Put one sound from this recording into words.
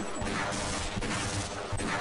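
A revolver fires a loud shot.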